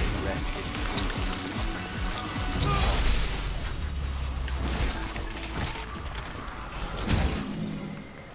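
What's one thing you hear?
A huge creature collapses and explodes with a loud, rumbling roar.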